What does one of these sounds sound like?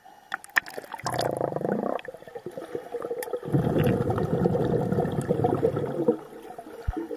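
Water splashes and churns loudly as a child pushes through it.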